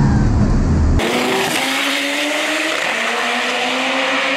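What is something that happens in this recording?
Race car engines roar past outdoors and fade into the distance.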